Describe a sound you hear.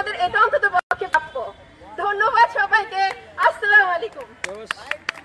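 A young woman shouts loudly through a megaphone.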